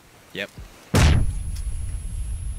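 A grenade explodes with a deep boom.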